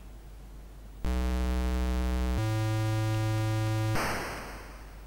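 A retro video game plays a loud, steady buzzing tone that shifts pitch once.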